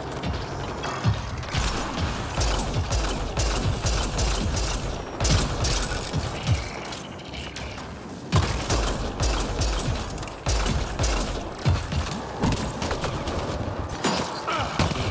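Gunfire cracks and booms in repeated bursts.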